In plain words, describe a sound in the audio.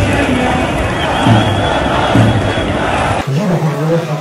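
A large crowd chants loudly outdoors.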